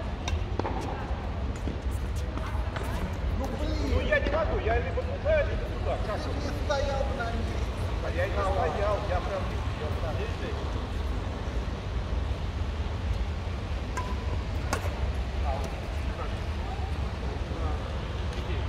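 Shuttlecocks pop off badminton rackets in quick rallies.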